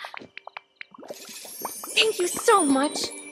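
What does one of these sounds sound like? A bright magical chime sparkles briefly.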